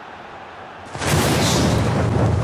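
A burst of flames whooshes loudly.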